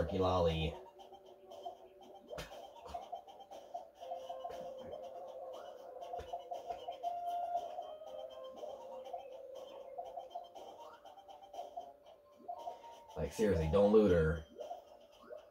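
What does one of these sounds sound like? Tinny electronic game music plays from a television speaker.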